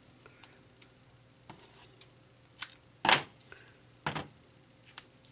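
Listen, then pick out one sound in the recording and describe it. Hands tap and rub paper on a table.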